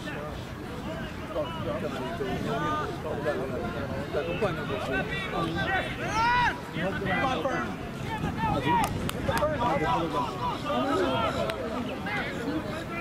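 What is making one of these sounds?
A crowd of spectators cheers and yells excitedly, growing louder as play breaks open.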